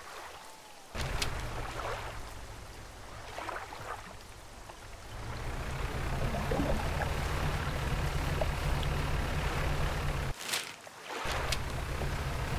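A boat engine hums steadily at low pitch.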